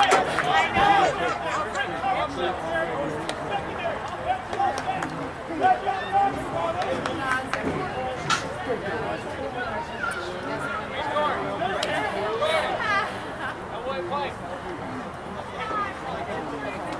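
Several men and boys talk and call out nearby, outdoors.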